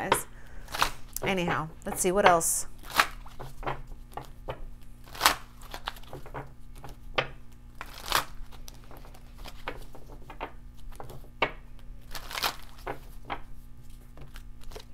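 Playing cards riffle and shuffle between hands.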